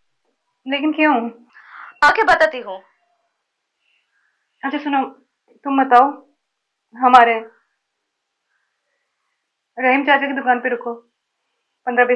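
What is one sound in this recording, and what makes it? A young woman speaks tensely into a phone.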